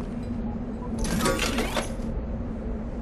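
A coin chimes as it is collected.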